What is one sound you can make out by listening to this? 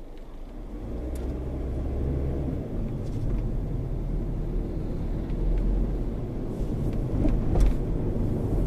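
A car engine grows louder as the car speeds up.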